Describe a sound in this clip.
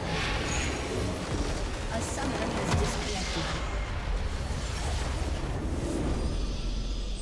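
A huge magical explosion roars and crumbles, ringing out over several seconds.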